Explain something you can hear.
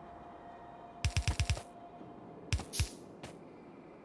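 A quick series of building thuds sounds as objects are put down.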